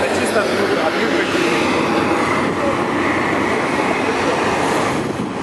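A military diesel truck's engine rumbles on the street.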